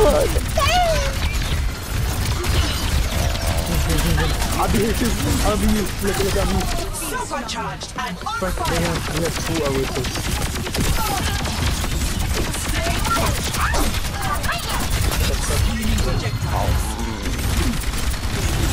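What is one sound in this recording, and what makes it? Rapid gunfire and weapon blasts crack repeatedly.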